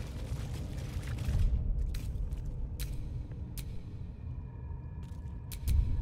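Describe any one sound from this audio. Soft menu clicks sound a few times.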